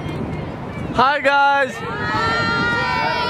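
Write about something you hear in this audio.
A group of boys shout and cheer excitedly, close by.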